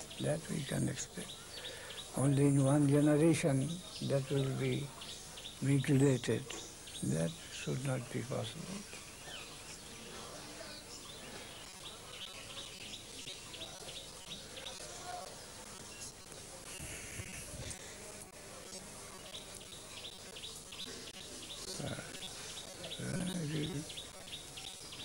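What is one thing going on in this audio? An elderly man speaks calmly and slowly into a clip-on microphone, with long pauses.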